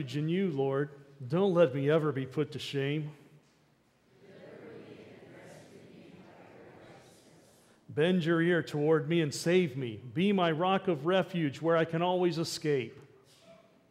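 A middle-aged man speaks calmly into a microphone in an echoing room, pausing between phrases.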